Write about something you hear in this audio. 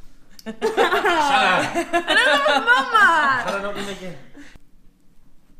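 A girl laughs and talks excitedly close by.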